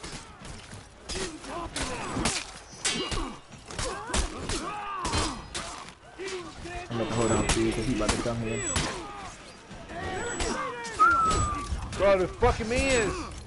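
Swords clash and clang in a fierce battle.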